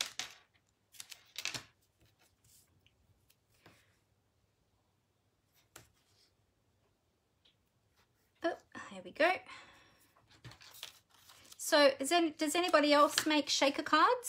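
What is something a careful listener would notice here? Adhesive tape rips off a roll.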